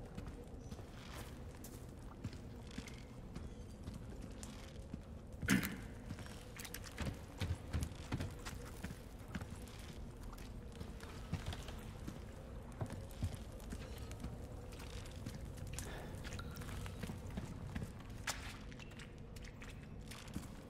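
Footsteps crunch slowly on a rocky floor.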